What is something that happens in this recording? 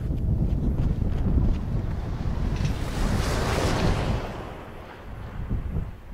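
A car engine rumbles as a vehicle drives past.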